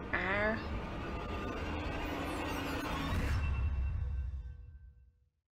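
A woman speaks in a strained, breathy voice.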